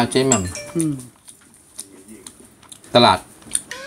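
A fork clinks against a bowl.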